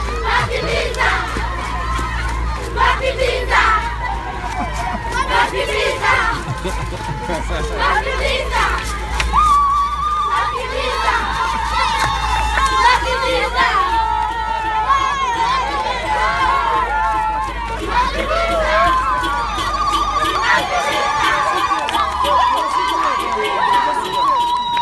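Children shout and cheer excitedly close by.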